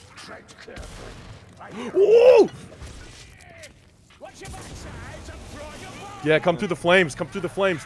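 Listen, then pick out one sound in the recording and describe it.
A gun fires sharp shots.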